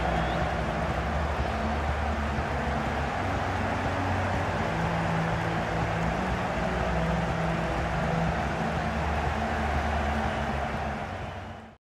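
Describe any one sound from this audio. A huge stadium crowd sings loudly together, echoing across the stands.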